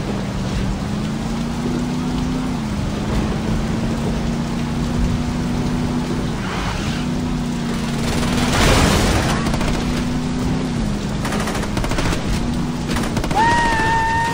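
A truck engine hums steadily and changes pitch as the truck speeds up and slows.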